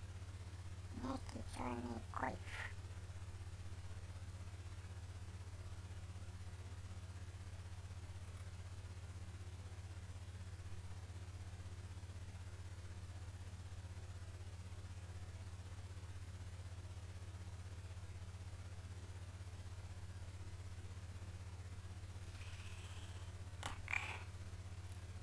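A young man speaks briefly and quietly into a headset microphone.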